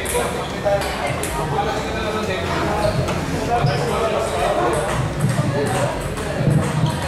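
A crowd of young men murmurs and calls out in the background.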